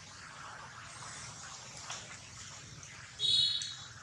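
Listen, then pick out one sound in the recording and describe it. A monkey scampers across wet stone.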